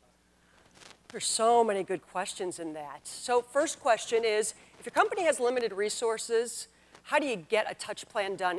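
A middle-aged woman speaks with animation into a microphone.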